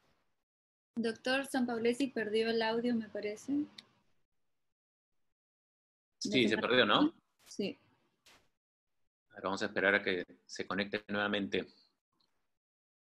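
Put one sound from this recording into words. A man speaks calmly through an online call, heard over a microphone, with short pauses.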